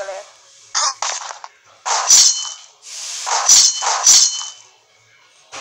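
A blade swishes through the air in quick swings.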